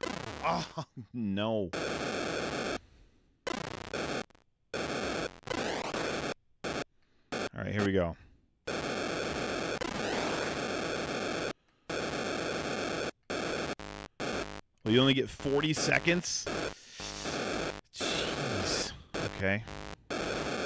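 A man talks near a microphone.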